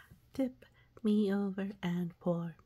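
A small toy speaker plays a cheerful recorded voice.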